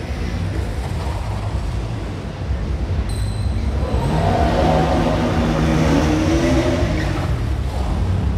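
A single-cylinder motorcycle engine revs hard as a rider performs stunts.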